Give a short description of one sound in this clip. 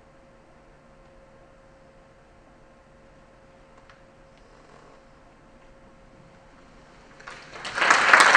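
A piano plays a soft, lingering note.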